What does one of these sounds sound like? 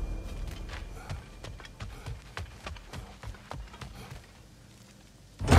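Heavy footsteps thud steadily.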